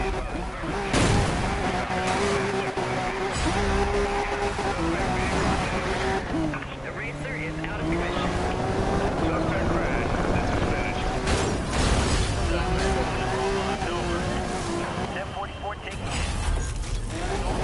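Cars crash and metal crunches loudly.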